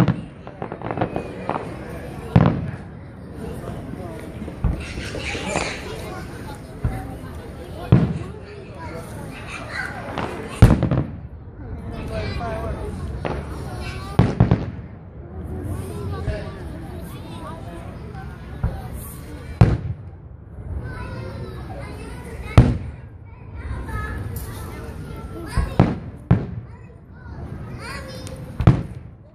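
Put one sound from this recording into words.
Fireworks boom and crackle in the distance, outdoors.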